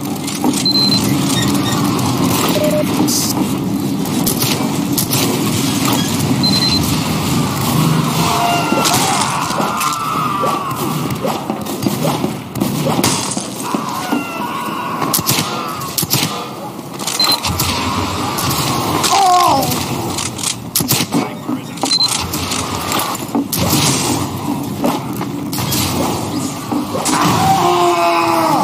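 Rockets fire and explode with loud booms.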